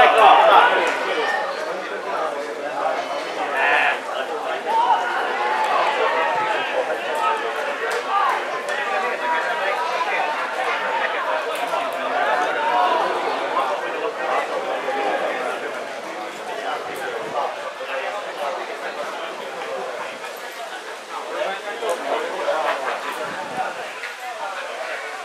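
Young men shout and call out to each other outdoors on an open field.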